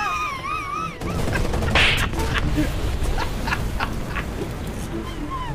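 A tank explodes with a loud roaring blast.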